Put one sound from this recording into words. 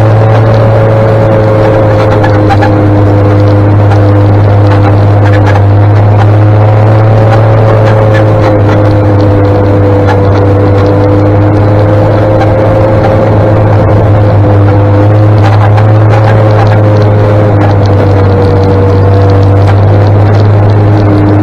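A motorcycle engine hums steadily close by at low speed.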